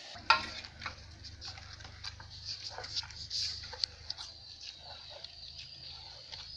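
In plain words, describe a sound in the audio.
A hand squishes and kneads wet food in a metal bowl.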